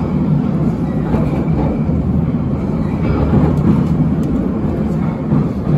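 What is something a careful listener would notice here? A subway train rumbles loudly along the tracks.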